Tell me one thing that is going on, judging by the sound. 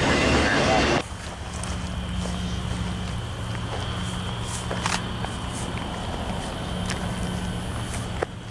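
A diesel locomotive engine hums low and steady as it approaches.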